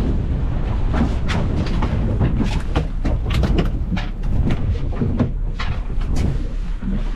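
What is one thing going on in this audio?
A fish flaps and thumps against a boat deck.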